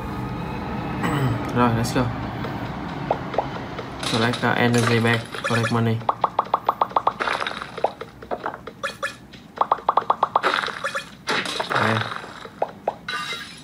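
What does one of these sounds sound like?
Electronic game sounds chime and blip rapidly from a small speaker.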